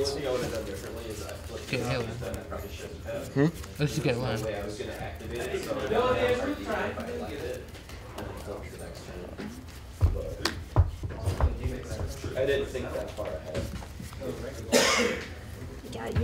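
Cards are shuffled and riffled by hand.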